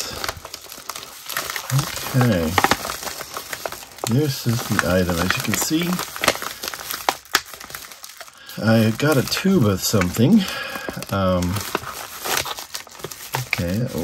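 A plastic padded mailer crinkles and rustles as hands squeeze and turn it.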